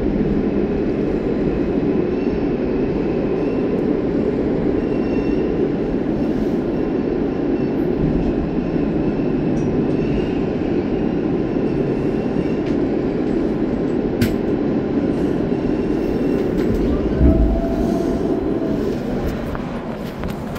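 A subway train rumbles loudly along a tunnel.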